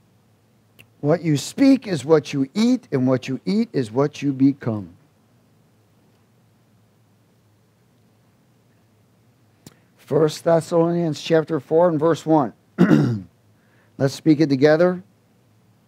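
A man reads aloud calmly into a headset microphone, with pauses.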